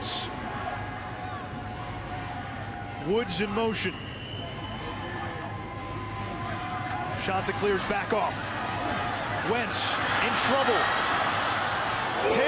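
A large crowd roars in a big echoing stadium, growing louder toward the end.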